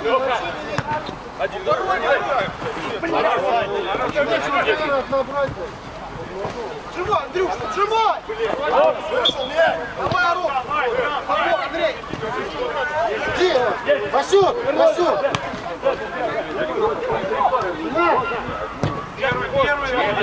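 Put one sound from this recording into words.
Men shout to each other outdoors.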